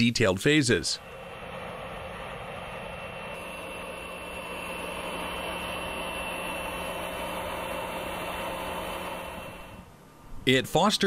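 A jet engine hums steadily nearby.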